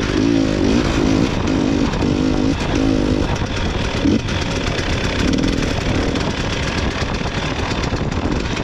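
Snow hisses and crunches under a snowmobile's tracks.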